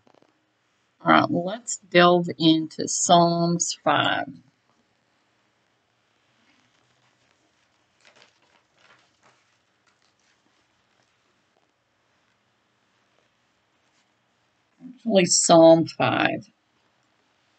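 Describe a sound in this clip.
An older woman speaks calmly and close to a microphone, in short bursts with long pauses.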